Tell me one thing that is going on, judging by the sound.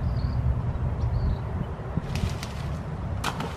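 Leaves rustle as a pole shakes a tree.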